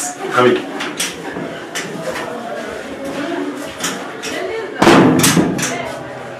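A spray bottle hisses in short bursts.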